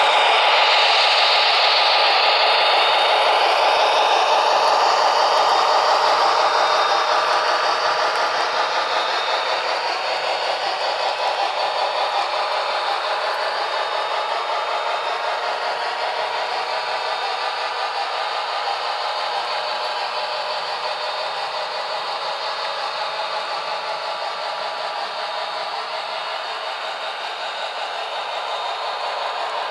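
A model train rattles steadily along its track and slowly moves away.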